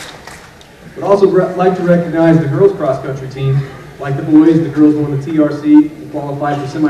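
A young man speaks calmly into a microphone over loudspeakers.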